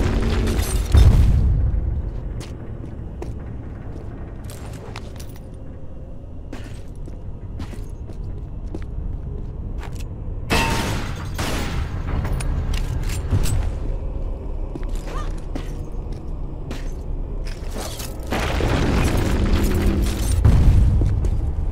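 A heavy thud sounds as a figure lands on stone after a jump.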